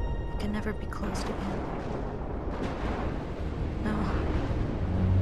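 A young woman speaks quietly and gravely.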